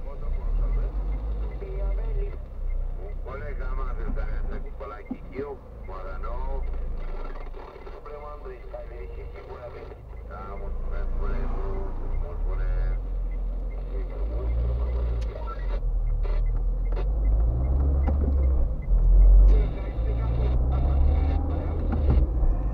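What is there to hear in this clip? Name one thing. A car engine hums steadily from inside the car, growing louder as the car speeds up.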